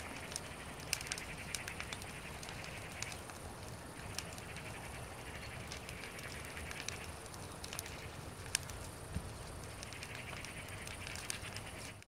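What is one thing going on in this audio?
A small fire crackles and pops close by.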